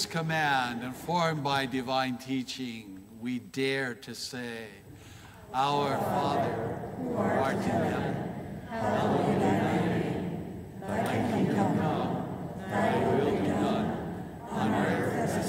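A middle-aged man sings through a microphone in an echoing hall.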